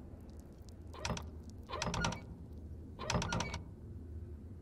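Heavy wooden doors creak open.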